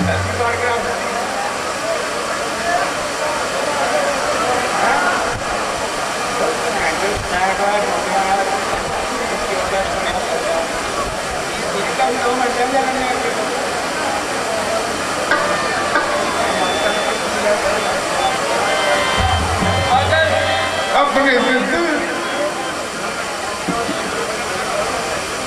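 An elderly man speaks loudly and forcefully into a microphone, heard over loudspeakers.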